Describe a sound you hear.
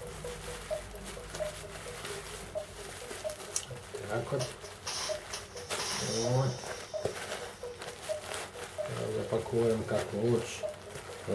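Plastic bubble wrap crinkles and rustles as hands wrap an object.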